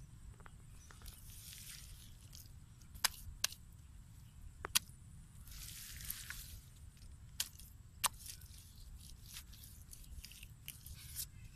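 Clumps of mud drop and splatter onto the ground.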